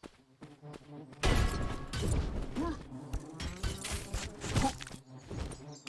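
Blades swing and strike in a quick fight.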